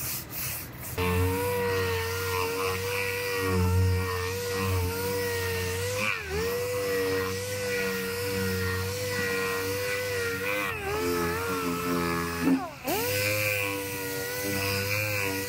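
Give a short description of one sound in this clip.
An orbital sander whirs against a car panel.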